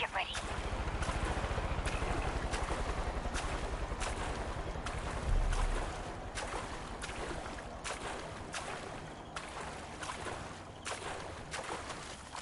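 Water splashes and sloshes as someone swims.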